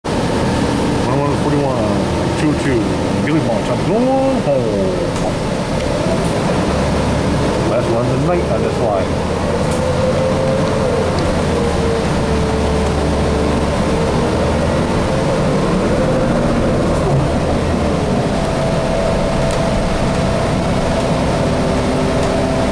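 A bus engine whines, rising and falling in pitch as the bus speeds up and slows down.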